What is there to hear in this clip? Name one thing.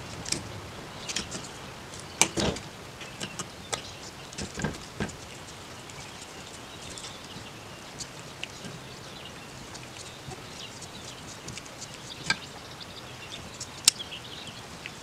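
A screwdriver clicks and scrapes against a metal carburetor.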